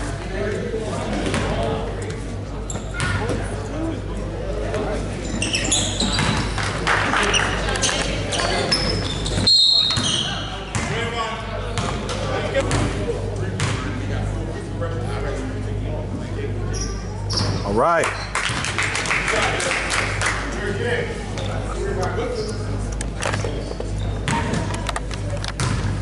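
Sneakers squeak and thud on a wooden court in a large echoing gym.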